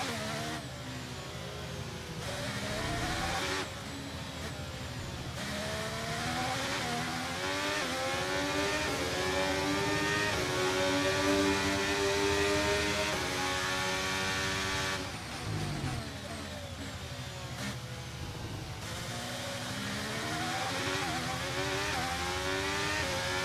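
A racing car engine screams, rising and falling in pitch as it shifts gears.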